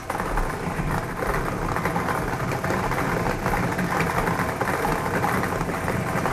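Plastic lottery balls clatter and rattle against each other.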